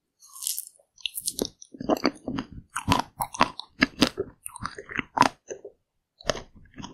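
A woman chews and smacks her lips close to the microphone.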